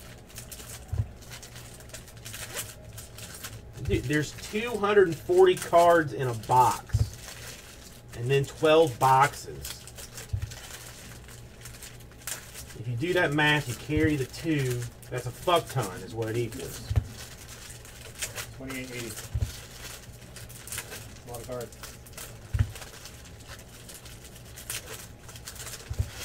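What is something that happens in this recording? Foil card wrappers crinkle and tear as they are opened.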